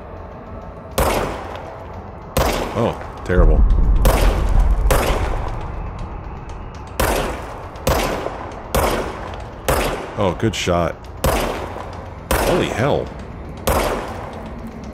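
Gunshots ring out one after another, each with a short echo.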